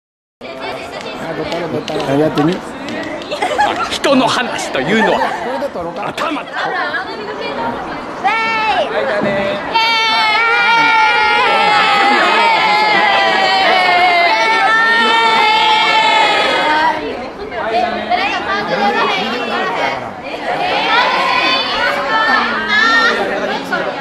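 A group of young people shout and cheer together.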